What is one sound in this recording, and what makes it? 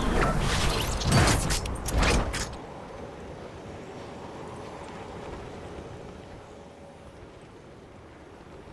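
Wind rushes loudly, then softens to a steady whoosh.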